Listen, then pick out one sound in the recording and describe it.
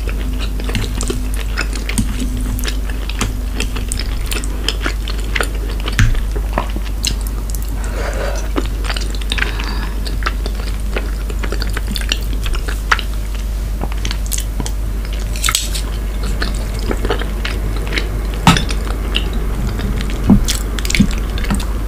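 Chopsticks clink against a glass bowl.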